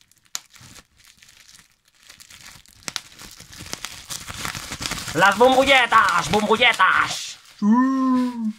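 Plastic wrapping crinkles and rustles as a man handles it.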